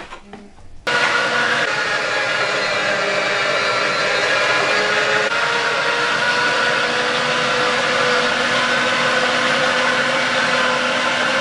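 An electric meat grinder motor whirs steadily.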